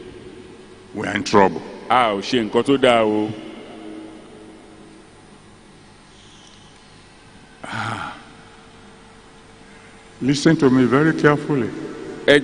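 An elderly man speaks slowly and deliberately through a microphone, in short bursts with long pauses.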